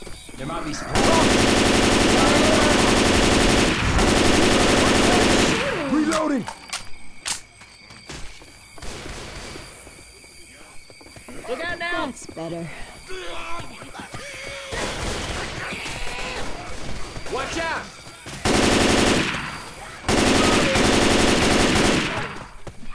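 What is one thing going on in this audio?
An automatic rifle fires in long, rapid bursts.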